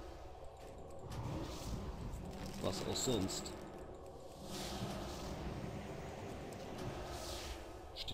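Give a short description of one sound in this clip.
Spell effects and blows clash during a fight with a large creature.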